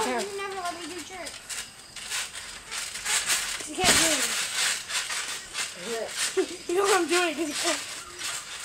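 Feet bounce and thump on a trampoline mat.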